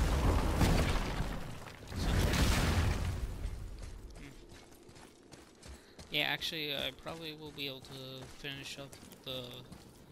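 Heavy footsteps crunch over snow and stone.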